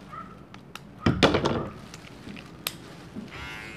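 Hair clippers click and clatter as they are handled.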